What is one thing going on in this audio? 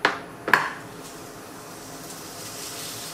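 Meat sizzles softly in a hot pan.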